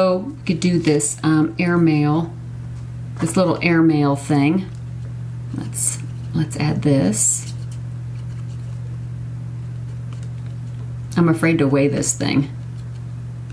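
A young woman talks calmly, close to a microphone.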